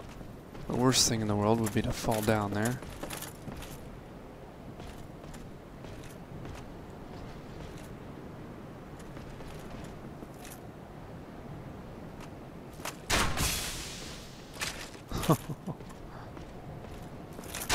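Armoured footsteps clank on wooden planks.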